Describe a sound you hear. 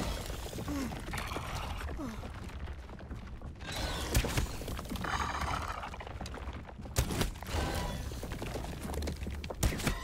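Air bubbles gurgle from a diver's breathing gear.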